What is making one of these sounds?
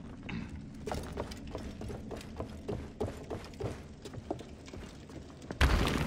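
Footsteps tread on wooden planks and sand.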